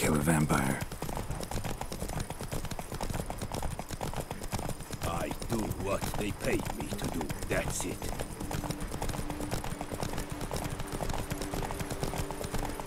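Horses' hooves clop steadily on a dirt road.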